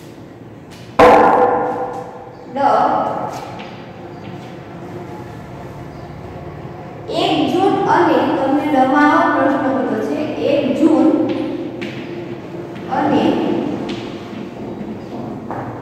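A woman speaks calmly, as if teaching.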